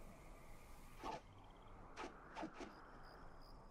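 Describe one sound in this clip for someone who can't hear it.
Weapons swish and strike sharply in a game's fight.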